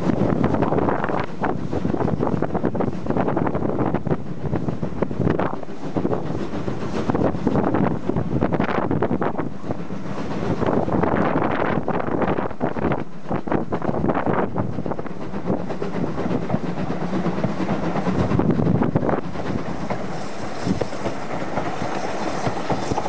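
Strong wind blows and buffets outdoors.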